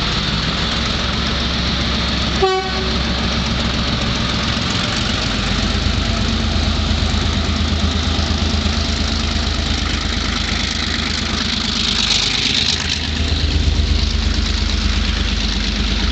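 A diesel locomotive engine rumbles loudly as it approaches and passes close by.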